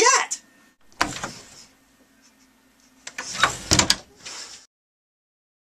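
A door swings and bangs shut.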